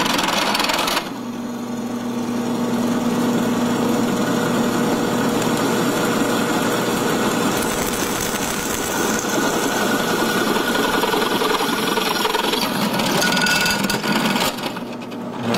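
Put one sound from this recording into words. A drill bit grinds into metal.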